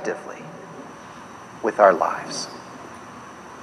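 A man speaks a few words through a microphone.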